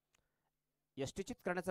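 A man commentates with animation through a microphone.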